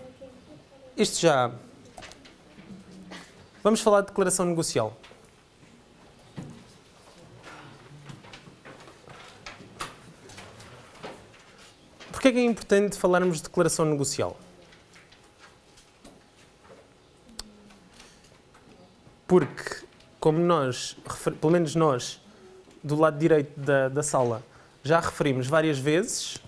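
A man lectures in bursts, pausing often, in a room with slight echo.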